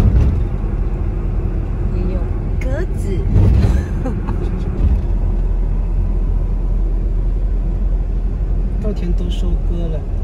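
A car engine hums steadily as tyres roll over the road.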